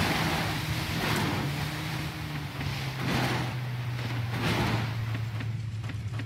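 Water sprays and rushes against a speeding boat.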